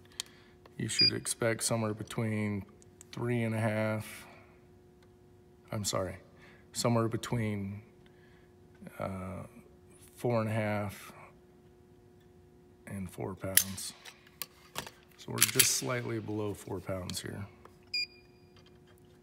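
A small electronic gauge beeps briefly.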